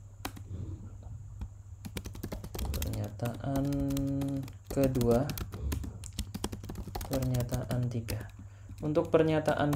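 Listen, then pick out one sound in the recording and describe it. Keys click on a computer keyboard in quick bursts.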